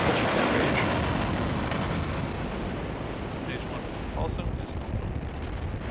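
A rocket engine rumbles through the vehicle, muffled and close.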